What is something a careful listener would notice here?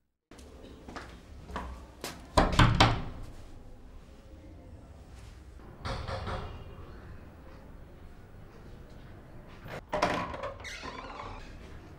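A latch rattles on a wooden door.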